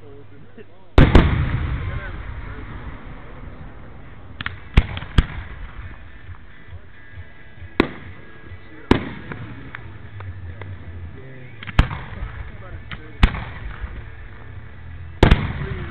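Fireworks burst with loud booms that echo away.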